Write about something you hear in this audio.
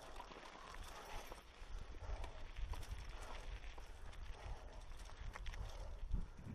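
Mountain bike tyres crunch and rattle over a rocky dirt trail.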